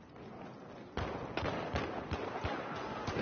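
Rapid gunshots crack nearby.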